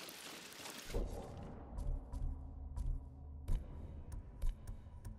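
Short interface clicks sound one after another.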